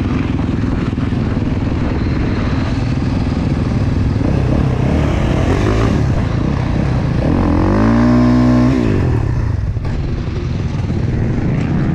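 Other motorbike and quad engines idle and rev nearby.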